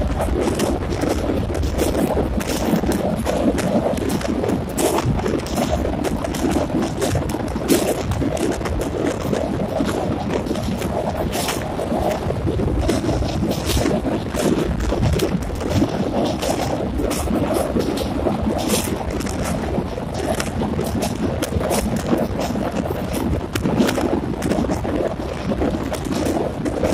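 A passenger train rumbles and rattles across a steel truss bridge.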